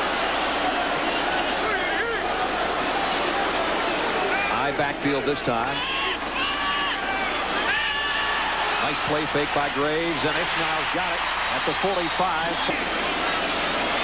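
A large crowd roars steadily in a big stadium.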